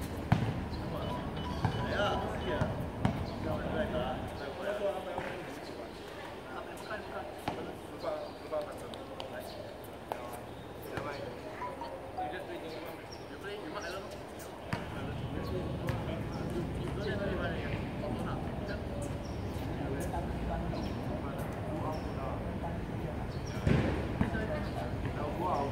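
A basketball bounces on an outdoor court.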